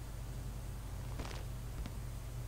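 A fist bangs on a wooden desk.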